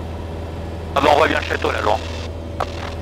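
A man speaks briefly through a headset intercom.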